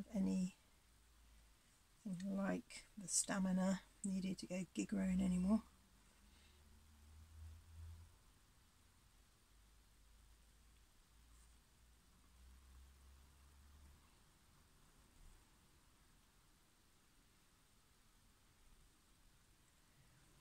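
A paintbrush strokes softly across a painted surface.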